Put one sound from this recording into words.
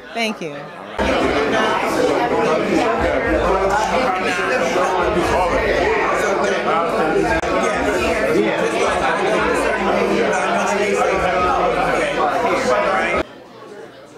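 A crowd of people chatter loudly all around in a room.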